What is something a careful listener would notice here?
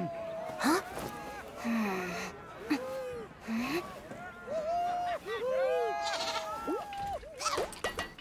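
A young boy murmurs in puzzlement.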